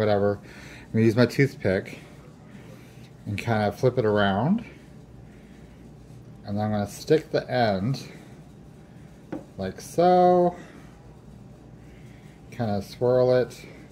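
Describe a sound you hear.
A spoon scrapes and stirs a thick paste in a bowl.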